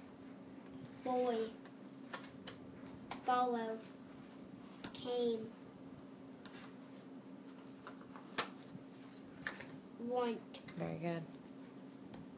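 A young boy reads words aloud slowly, one at a time, close by.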